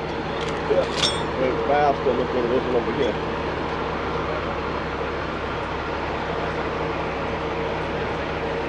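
A tyre spins on its wheel with a steady low whir.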